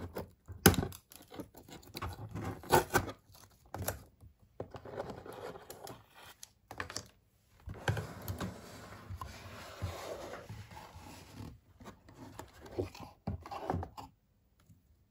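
Hands handle a cardboard box with faint rustling and tapping.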